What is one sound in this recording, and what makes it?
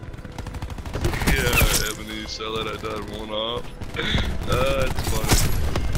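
Rapid gunfire bursts out in loud cracks.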